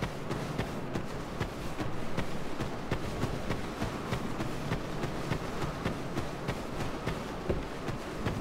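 Armoured footsteps thud quickly on the ground.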